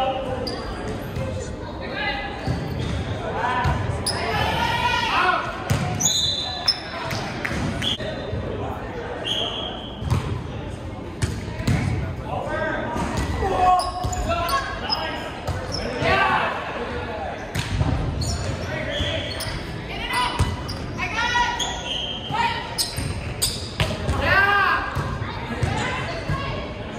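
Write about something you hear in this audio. Young players shout and call out to each other with animation.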